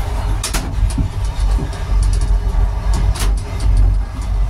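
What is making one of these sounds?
A door handle rattles and clicks as it is tried.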